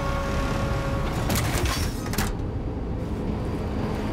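A heavy sliding metal door opens.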